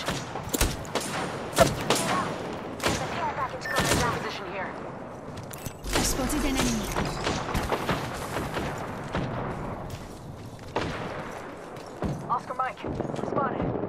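Footsteps thud quickly as a game character runs.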